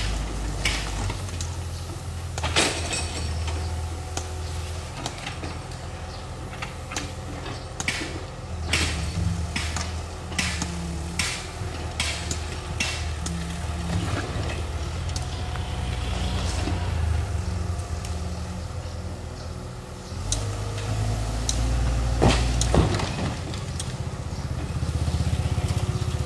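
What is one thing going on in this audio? A wheeled mini excavator's diesel engine runs.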